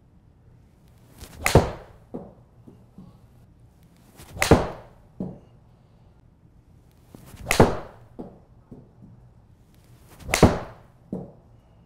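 A golf club whooshes through the air in a fast swing, several times.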